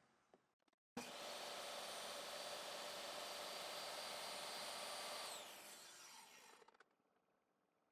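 A table saw motor whines steadily, then winds down.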